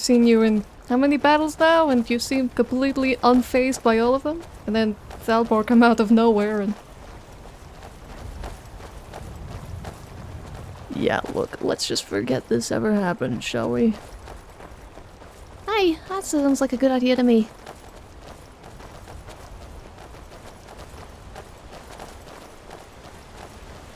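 Footsteps crunch on stony ground at a steady pace.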